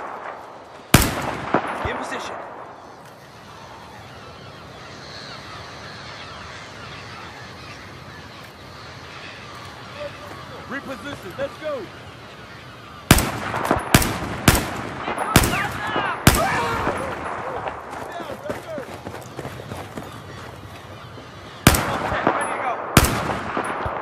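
A rifle fires single loud shots that echo widely outdoors.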